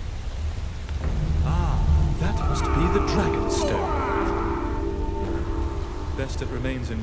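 A waterfall roars and splashes nearby.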